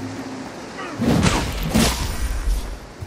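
A sword slashes through the air with a heavy whoosh.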